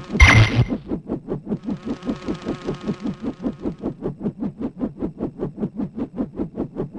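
A toy-like propeller whirs in quick, even pulses.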